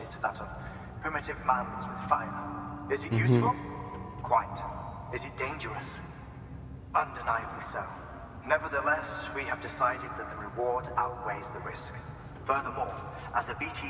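A man speaks calmly and deliberately.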